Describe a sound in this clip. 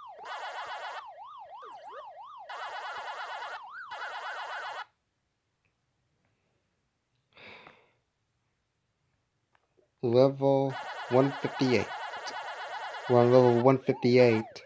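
A siren-like game tone wails up and down steadily.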